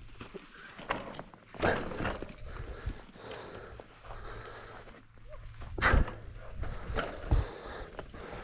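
A bicycle frame rattles and clunks over bumps.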